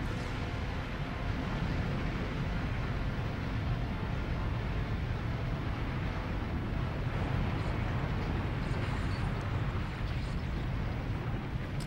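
Rock and debris rumble and roar steadily.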